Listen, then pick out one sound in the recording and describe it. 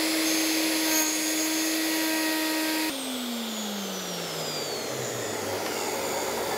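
A wood router whines loudly and then winds down.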